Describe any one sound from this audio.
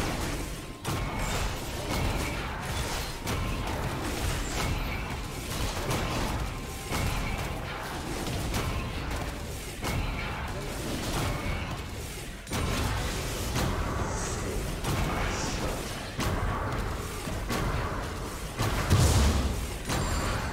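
Fantasy game sound effects of spells and blows ring out.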